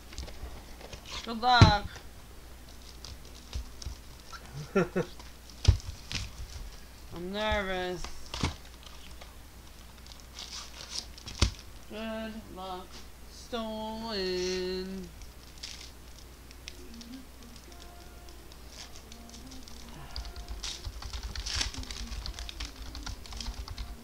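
Plastic wrapping crinkles and rustles under gloved hands.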